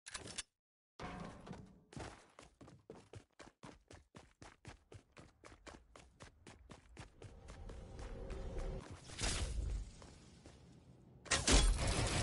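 Footsteps patter quickly in a video game.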